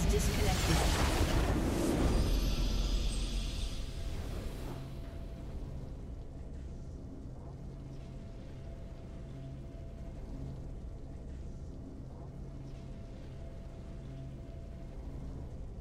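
Triumphant game music plays steadily.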